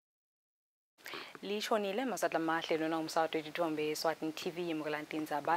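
A young woman speaks calmly and clearly into a microphone, reading out.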